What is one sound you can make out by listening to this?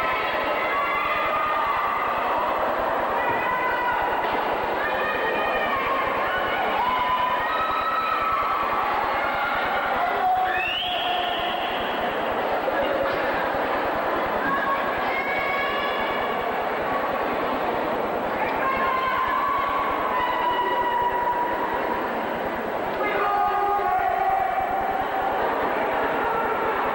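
Music plays loudly over loudspeakers in a large echoing hall.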